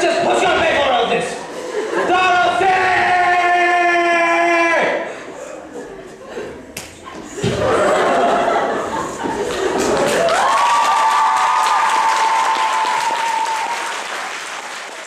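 A young man speaks loudly and dramatically in an echoing hall.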